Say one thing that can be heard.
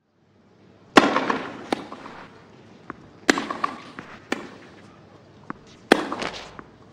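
A tennis ball is struck back and forth with sharp racket hits.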